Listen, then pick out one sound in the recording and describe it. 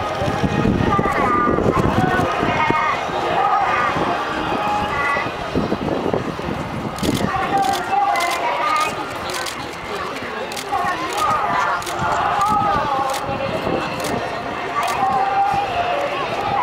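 A crowd of men and women chat nearby outdoors.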